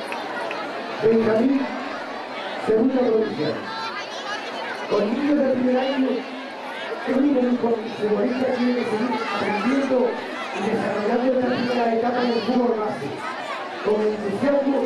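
A man speaks loudly and close by, in short bursts.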